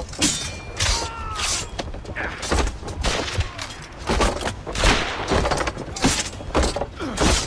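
Swords clash and ring sharply in a fight.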